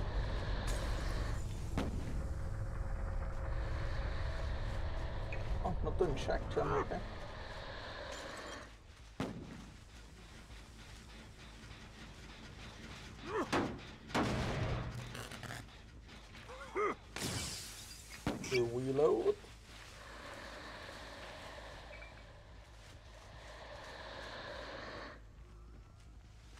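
Dry corn stalks rustle and swish as someone pushes through them.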